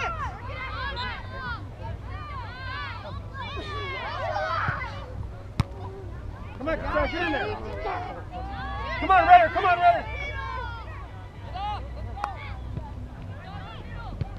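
Young players shout and call out to each other on an open field.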